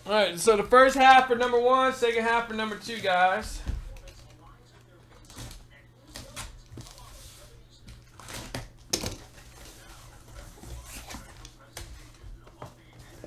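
Cardboard rustles and scrapes as a box is handled and opened.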